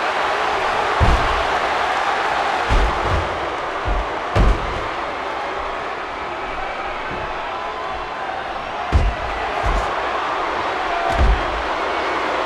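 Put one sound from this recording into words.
Heavy bodies slam onto a wrestling mat with loud thuds.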